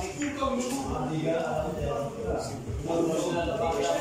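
Pool balls click together as a cue strikes.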